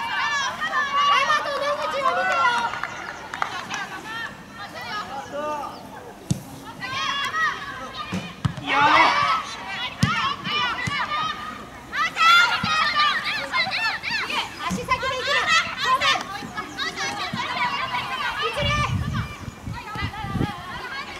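Young women shout and call to each other across an open field outdoors.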